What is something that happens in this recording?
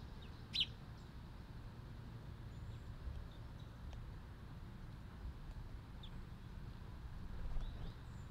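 A small bird chirps a few short, high notes nearby.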